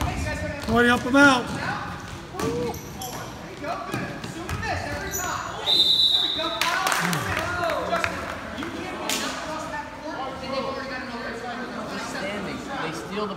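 Young spectators shout and cheer loudly in an echoing hall.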